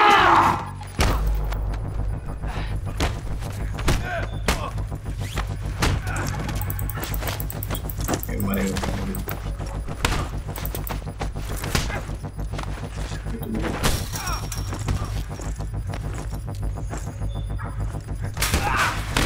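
Blows and scuffling thud during a struggle.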